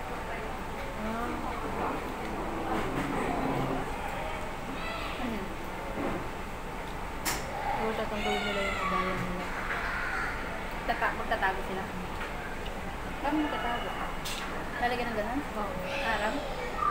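Two young women talk casually close by.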